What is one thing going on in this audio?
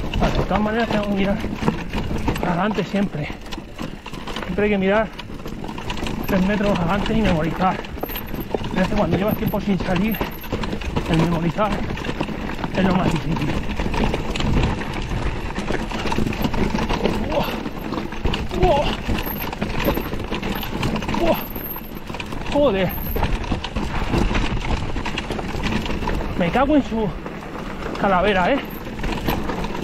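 A mountain bike's frame and chain rattle over bumps.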